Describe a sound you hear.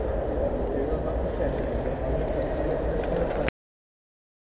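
Distant people murmur in a large, echoing hall.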